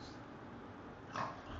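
A small dog gives a short bark close by.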